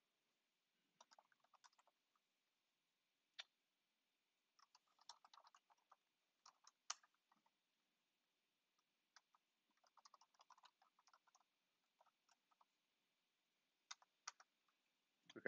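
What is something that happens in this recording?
Keys on a keyboard click in short bursts of typing.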